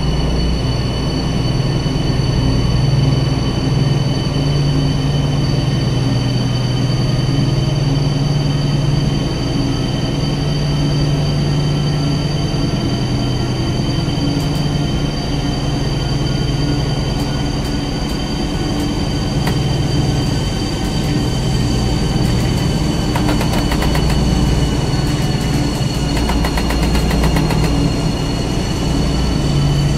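An electric locomotive hums steadily as it rolls along the track.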